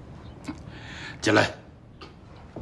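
A middle-aged man laughs briefly.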